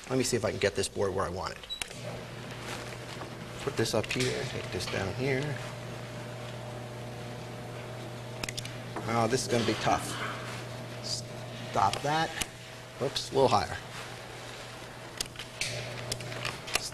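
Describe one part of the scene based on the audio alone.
A man lectures calmly in an echoing room, heard from a distance.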